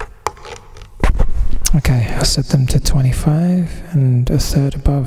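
A young man speaks calmly and close up into a microphone.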